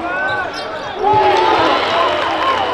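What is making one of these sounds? A small crowd cheers in a large echoing arena.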